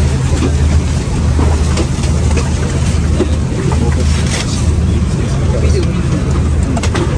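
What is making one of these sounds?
An aircraft cabin hums with a steady low drone.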